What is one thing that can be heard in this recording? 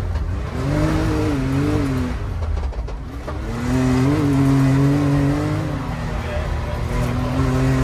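An off-road vehicle's engine roars and revs up and down close by.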